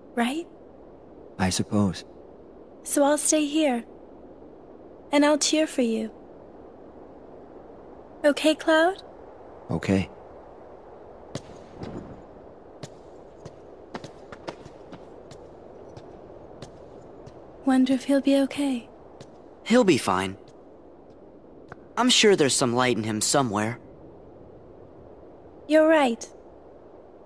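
A young woman speaks softly and warmly.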